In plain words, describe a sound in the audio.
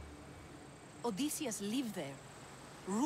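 A young woman speaks with animation, close up.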